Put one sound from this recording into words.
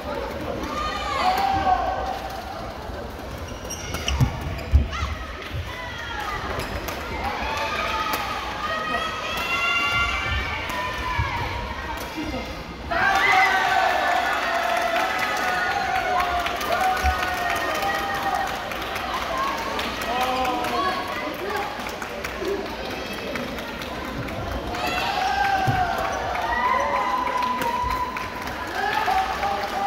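Many voices chatter and call out across a large echoing hall.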